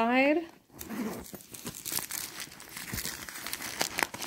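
A zipper slides open.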